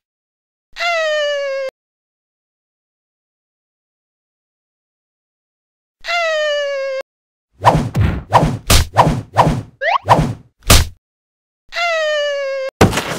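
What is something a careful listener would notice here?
A young girl's voice lets out a high, sustained cry several times.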